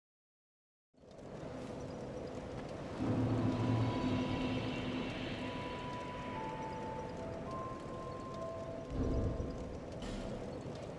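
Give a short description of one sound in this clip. A fire crackles and hisses steadily.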